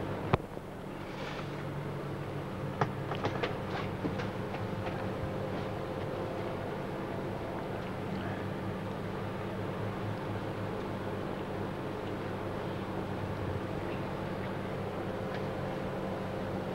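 A crowd murmurs softly outdoors in the distance.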